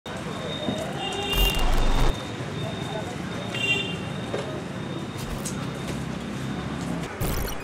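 Footsteps scuff on a paved street nearby.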